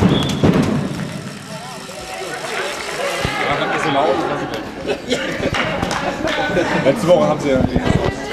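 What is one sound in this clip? Women handball players call out to each other in a large echoing hall.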